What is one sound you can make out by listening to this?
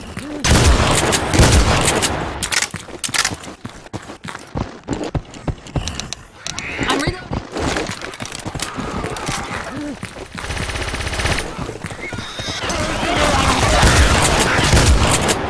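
Zombies snarl and groan.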